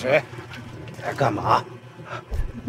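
A man growls and speaks threateningly, close by.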